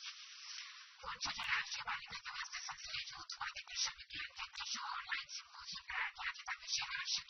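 A woman reads out the news clearly into a microphone.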